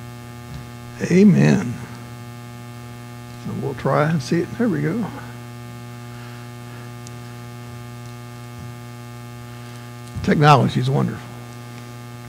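A middle-aged man speaks in short bursts through a microphone.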